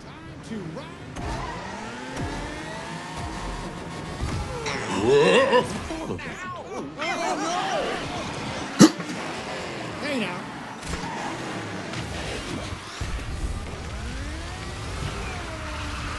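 Racing kart engines roar and whine as they speed along.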